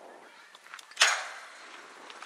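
A metal bat cracks sharply against a softball.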